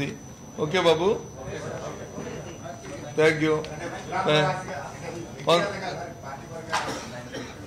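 A middle-aged man speaks into a microphone in bursts, with pauses.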